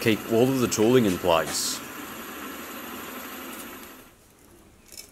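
A drill press bores into metal with a steady whir.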